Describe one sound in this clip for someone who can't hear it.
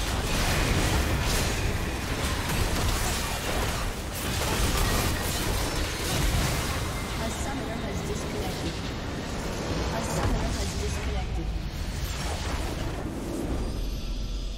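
Loud magic blasts and clashing hits from a game battle crackle and boom.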